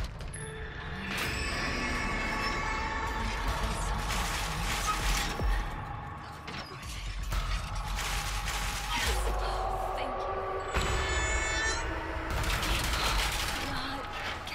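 Objects clatter as drawers and shelves are searched.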